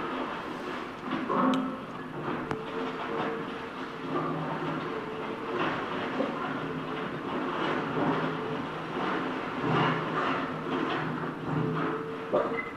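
Concrete rubble crunches and clatters as an excavator claw breaks it.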